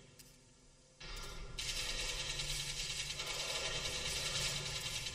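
A flamethrower roars with a loud, steady rushing blast.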